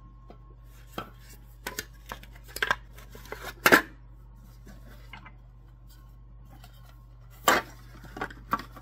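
A plastic lid clatters and knocks against a metal mixing bowl.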